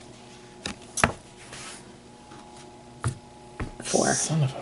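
A small game token clicks down onto a table.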